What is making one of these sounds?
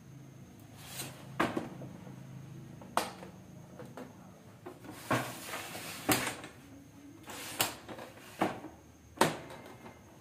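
A plastic printer knocks and thumps on a table.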